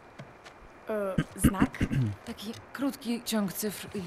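A boy speaks hesitantly.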